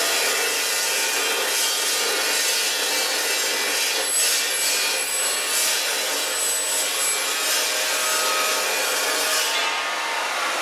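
A chop saw screeches loudly as its blade cuts through steel.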